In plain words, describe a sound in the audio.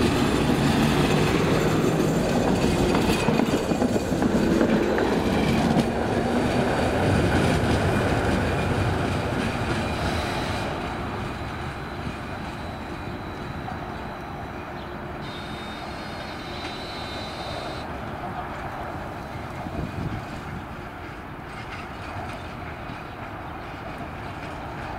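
A tram rumbles past close by on the rails, then rolls away and fades.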